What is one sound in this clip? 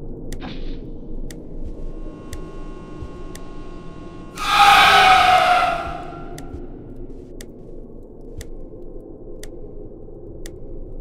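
A clock ticks steadily once every second.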